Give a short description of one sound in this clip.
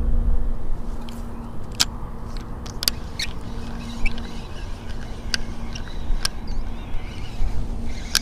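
A fishing reel clicks and whirs as a line is wound in.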